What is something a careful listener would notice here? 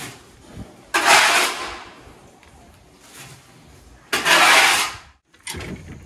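A metal shovel scrapes and scoops loose material.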